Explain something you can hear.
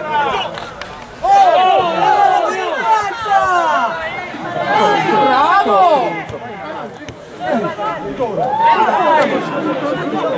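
Men in a crowd nearby talk and shout with animation.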